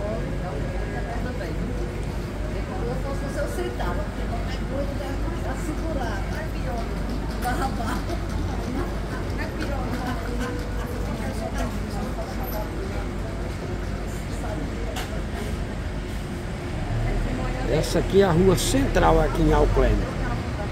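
People chatter nearby and in passing.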